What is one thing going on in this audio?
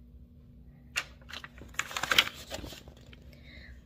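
A book page rustles as it is turned.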